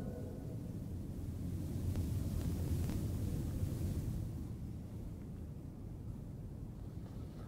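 A middle-aged man recites in a slow chant into a close microphone.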